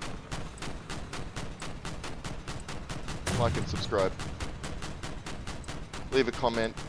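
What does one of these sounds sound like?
Heavy guns fire in a rapid steady burst.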